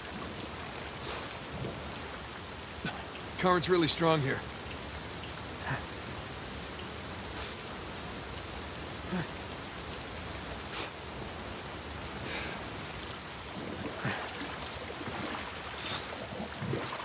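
Water splashes with each swimming stroke, at a steady pace.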